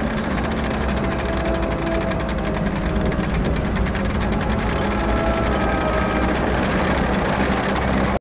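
A tank engine rumbles loudly and steadily.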